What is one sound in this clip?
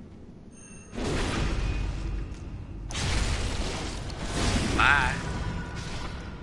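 Blades slash and strike hard in a close fight.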